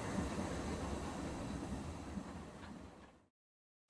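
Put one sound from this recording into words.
A steam locomotive idles with a low rumble.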